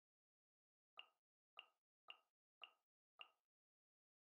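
Short soft chimes tick in an even row as a menu selection moves.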